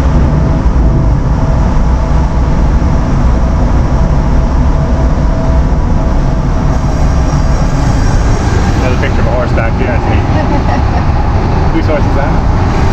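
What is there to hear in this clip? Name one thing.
Heavy machinery rumbles loudly and steadily.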